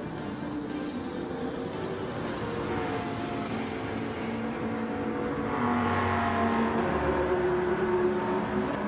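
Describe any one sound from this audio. Tyres screech while a car slides sideways.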